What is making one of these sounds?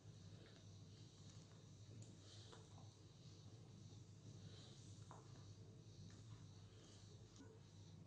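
A spatula softly scrapes through a thick mixture in a metal bowl.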